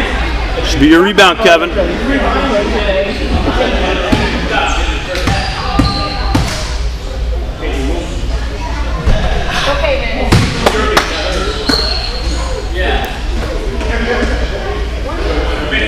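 Children and adults chatter and call out in a large echoing gym.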